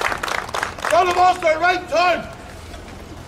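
A man shouts a sharp command outdoors.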